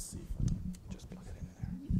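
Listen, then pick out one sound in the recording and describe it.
A man speaks through a microphone.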